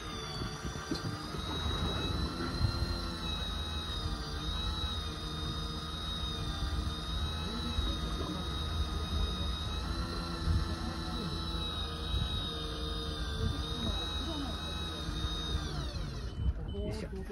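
An electric fishing reel whirs steadily as it winds in line.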